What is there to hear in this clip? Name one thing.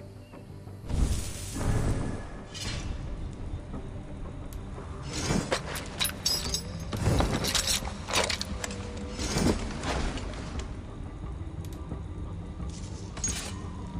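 Soft menu whooshes and clicks sound as game menus switch.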